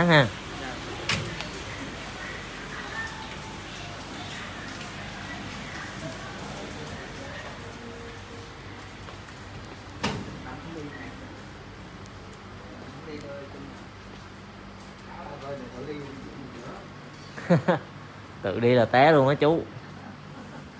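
A man and a woman talk nearby.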